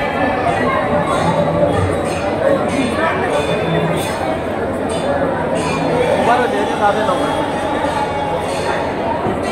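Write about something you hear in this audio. A crowd murmurs and chatters nearby.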